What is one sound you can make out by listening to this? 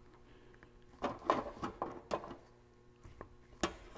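A metal tool clicks sharply as it presses saw teeth.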